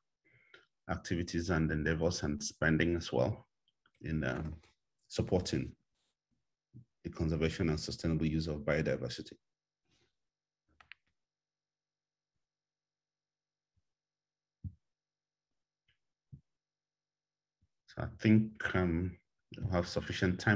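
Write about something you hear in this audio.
A man speaks calmly through an online call microphone, pausing between phrases.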